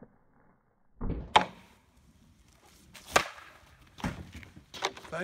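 A hockey stick sharply slaps a puck on pavement.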